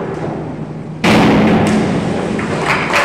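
A diver splashes into the water in a large echoing hall.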